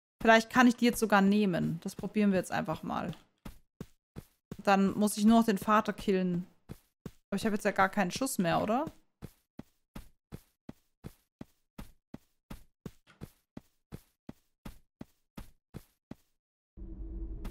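Footsteps tap in a quick, even rhythm.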